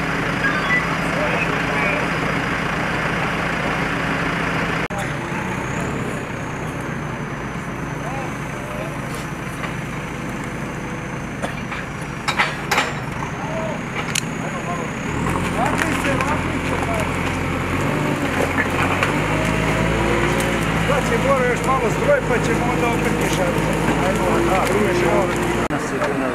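A diesel digger engine rumbles and idles nearby.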